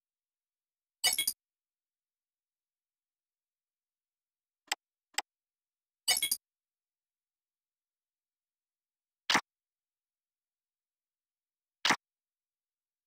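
Short electronic menu sounds chime and swoosh now and then.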